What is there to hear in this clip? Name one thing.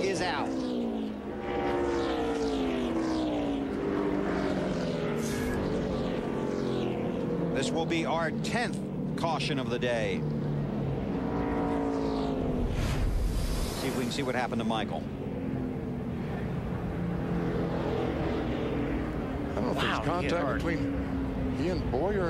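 Race car engines roar and whine as cars speed past.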